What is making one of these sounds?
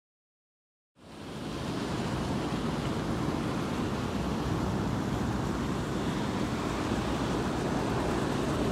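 Fountains splash and patter steadily outdoors.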